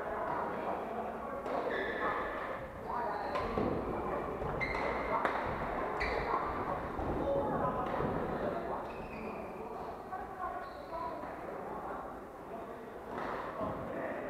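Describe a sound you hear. Shuttlecocks are struck with rackets, with sharp pops echoing in a large hall.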